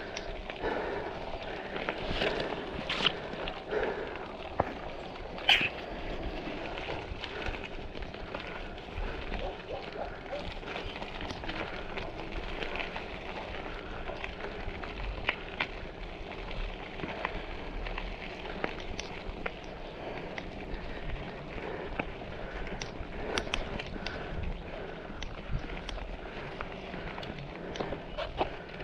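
Bicycle tyres crunch over gravel and dirt.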